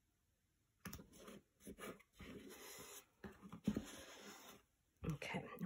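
Hands slide and press a sheet of paper into a wooden frame.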